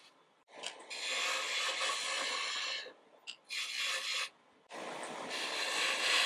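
A wood lathe motor hums.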